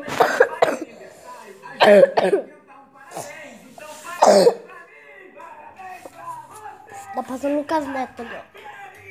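A boy talks loudly and playfully close to the microphone.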